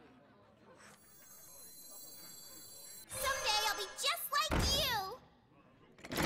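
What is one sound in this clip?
A game plays a magical chime and whoosh as a card is played.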